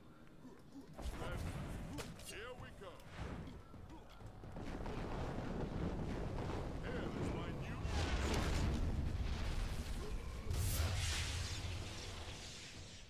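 Blades whoosh and clash in a fight.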